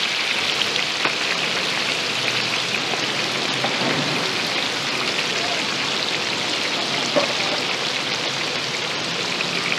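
Hot oil sizzles and crackles loudly and steadily.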